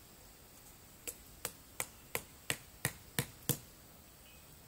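A tool knocks sharply on wood in a quick series of blows.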